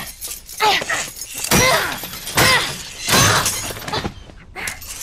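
A metal cage door rattles and clangs.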